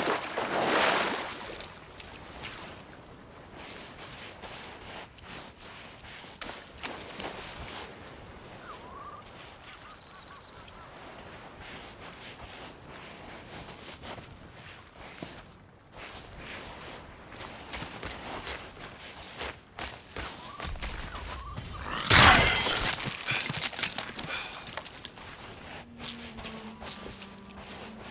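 Gentle waves wash softly onto a sandy shore.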